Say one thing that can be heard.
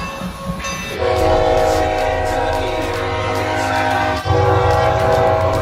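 A diesel locomotive horn blares loudly.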